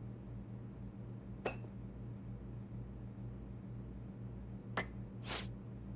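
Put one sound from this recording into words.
A cup clinks against a saucer.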